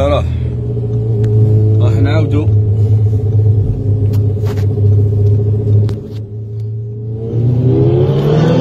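A car engine drones loudly at high speed.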